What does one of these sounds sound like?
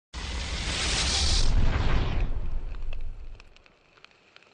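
A fiery explosion roars loudly and then fades away.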